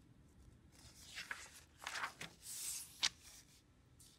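A page of paper rustles as it is turned.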